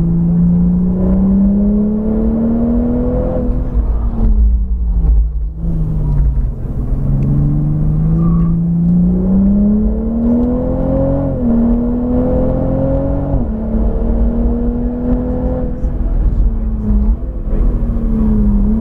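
A car engine roars close by, its pitch climbing with each gear and dropping sharply at each shift.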